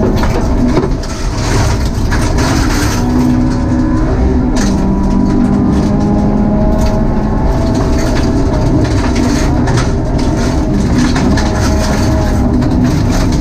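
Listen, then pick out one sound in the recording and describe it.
A rally car engine roars loudly and revs up and down.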